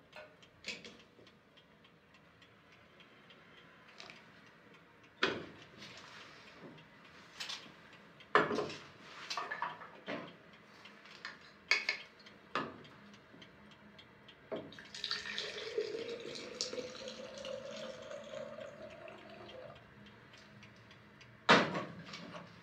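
Metal and china clink and clatter on a stove.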